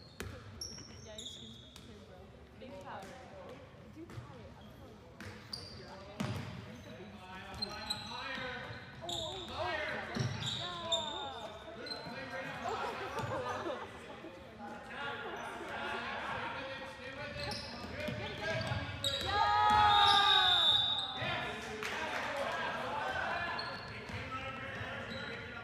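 Young men shout to each other across the hall.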